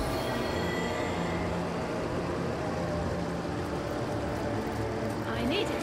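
A waterfall rushes steadily nearby.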